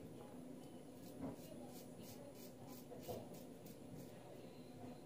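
A razor scrapes across stubble in short, quick strokes.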